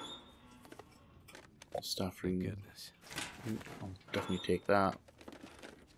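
Something rummages through a cabinet.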